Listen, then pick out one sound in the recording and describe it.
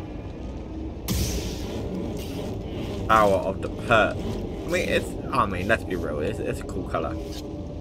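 A lightsaber ignites and hums.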